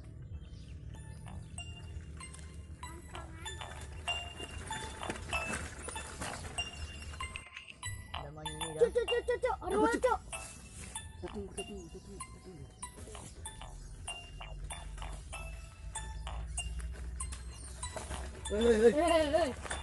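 Bicycle tyres roll over a dirt track.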